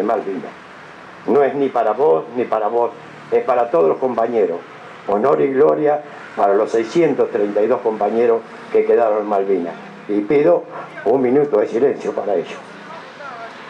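A middle-aged man speaks earnestly into a microphone, heard through a loudspeaker outdoors.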